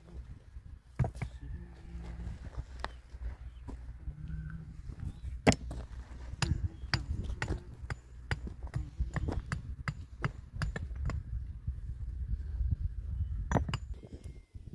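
Concrete blocks knock and scrape as a man lays them.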